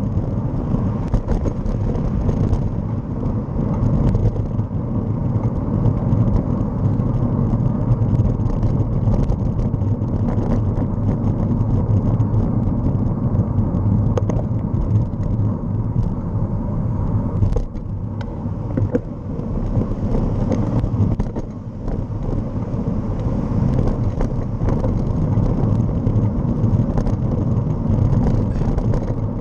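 A bicycle rattles and clicks over the road surface.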